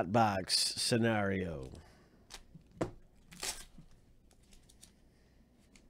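A foil card wrapper crinkles as it is torn open.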